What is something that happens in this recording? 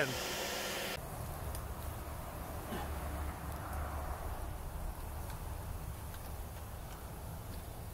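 A forge blower roars steadily.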